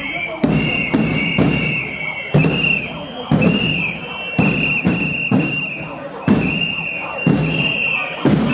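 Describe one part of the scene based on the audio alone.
A crowd of marching people chants loudly in a steady rhythm outdoors.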